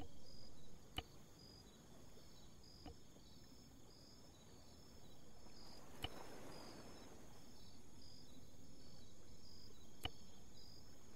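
Short game interface clicks sound now and then.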